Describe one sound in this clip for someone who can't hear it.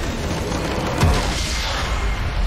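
A large crystal structure shatters with a loud crash.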